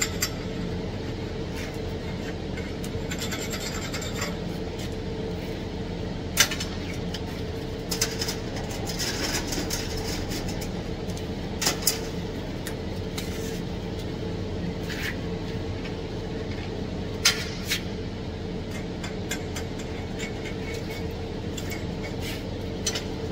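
Metal tools clank and knock now and then.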